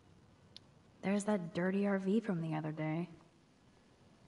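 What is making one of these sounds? A young woman speaks calmly and quietly to herself, close by.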